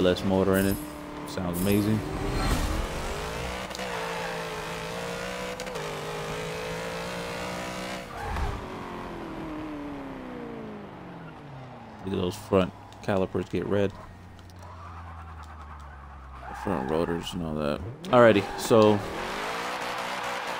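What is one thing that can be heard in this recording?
A car engine revs hard and climbs through the gears.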